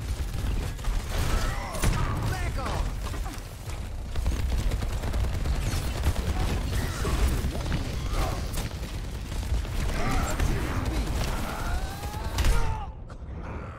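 Explosions boom and crackle close by.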